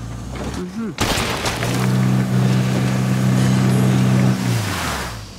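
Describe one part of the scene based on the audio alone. A truck engine revs loudly as the truck drives off.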